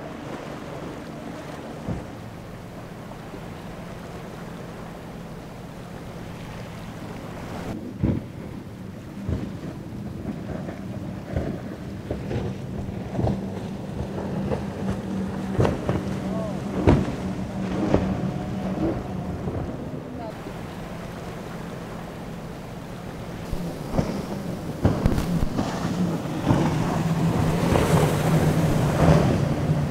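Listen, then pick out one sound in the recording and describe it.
A powerful boat engine roars at speed.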